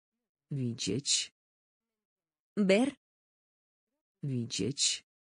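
A man reads out a single word clearly, pausing between words.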